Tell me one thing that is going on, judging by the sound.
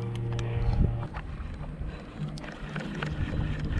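A fishing reel clicks and whirs as it is wound.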